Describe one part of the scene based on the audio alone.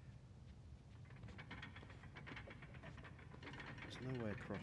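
Metal gears clatter and click rapidly.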